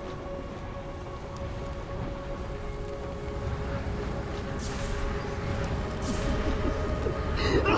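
A low, eerie drone hums steadily with faint sustained tones.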